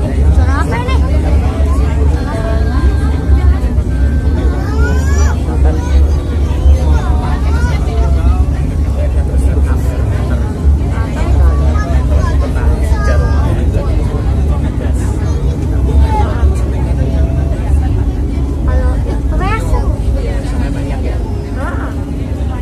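Train wheels squeal on curved rails.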